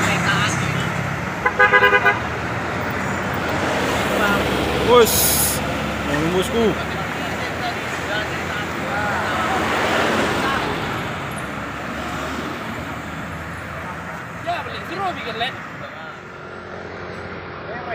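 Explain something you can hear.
Heavy truck engines rumble and whine as trucks climb a road.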